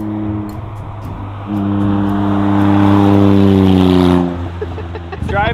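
A small car's engine hums loudly as it drives past, then fades away.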